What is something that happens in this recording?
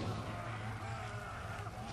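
A fire flares up and crackles.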